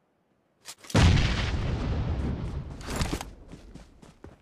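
Footsteps rustle quickly through tall grass.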